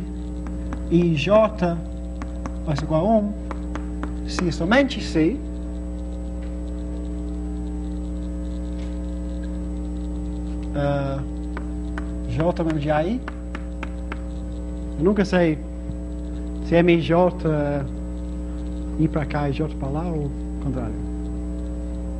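A man speaks calmly in short phrases with pauses, heard through a microphone.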